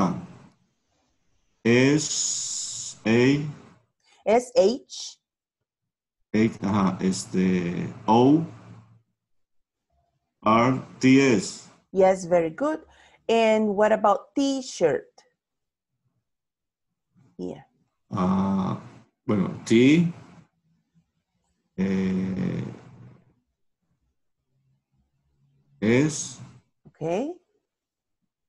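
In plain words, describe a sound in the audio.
A woman speaks calmly and clearly over an online call, pausing between phrases.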